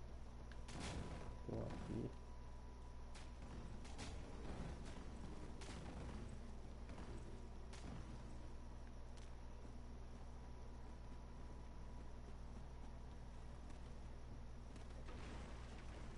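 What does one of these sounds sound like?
Armoured footsteps thud on stone steps.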